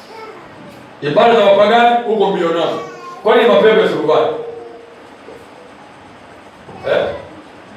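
A middle-aged man speaks calmly close to a microphone.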